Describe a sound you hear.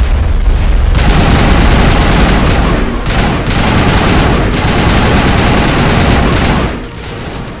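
Energy guns fire in rapid bursts with loud blasts.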